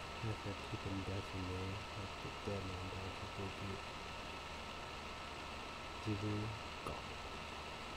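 A young man speaks calmly and close to a microphone, in short bursts.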